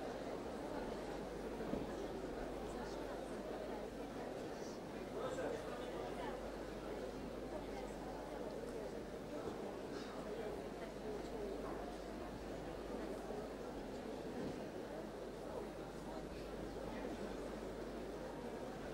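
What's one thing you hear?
A large audience murmurs and chatters quietly in a hall.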